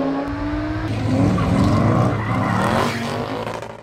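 Tyres squeal as a car drifts.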